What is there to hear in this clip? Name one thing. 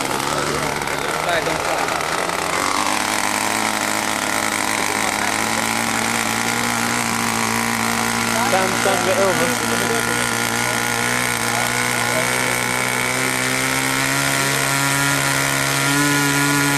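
A small model aircraft engine runs with a loud, steady buzz that rises in pitch toward the end.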